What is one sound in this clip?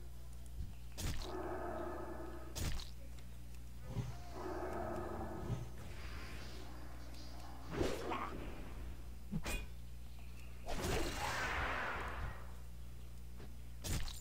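Magic bolts strike with sharp, crackling bursts.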